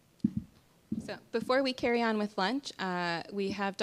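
A woman speaks calmly into a microphone over loudspeakers in a large room.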